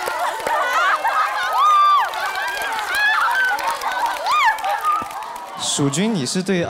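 A crowd of young women screams and shrieks excitedly.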